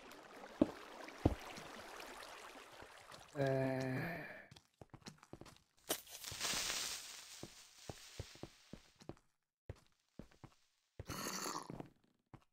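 Water pours and splashes steadily.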